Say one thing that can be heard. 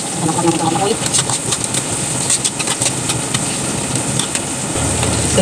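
A spatula scrapes and clicks against a metal pan.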